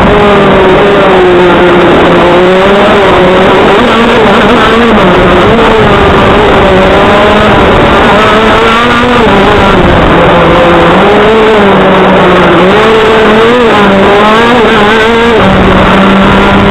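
A small kart engine drones loudly close by, its pitch rising and falling as it revs.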